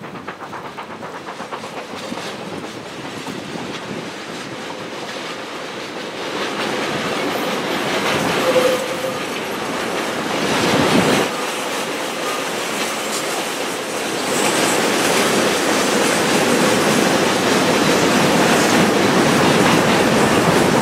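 Heavy freight wagons rumble and clatter along the rails.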